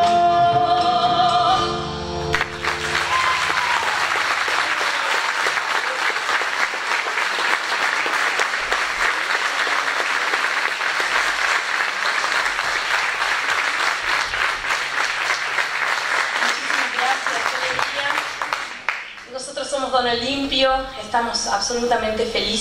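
A young woman sings loudly into a microphone.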